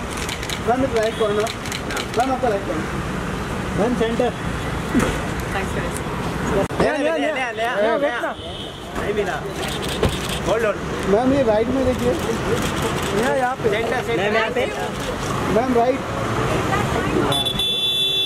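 Men call out loudly to a woman nearby.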